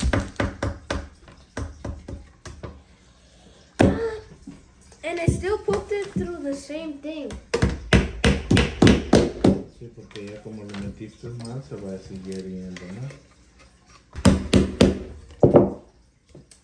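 A hammer taps on wood in quick, sharp blows.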